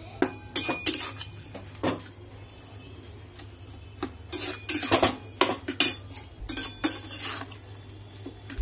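A metal spoon scrapes and clatters against a pan.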